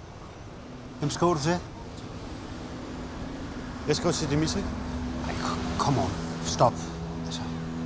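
A man speaks calmly and briefly, close by.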